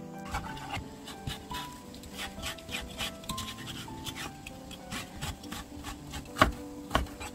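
A knife taps rapidly against a cutting board as it scores soft squid.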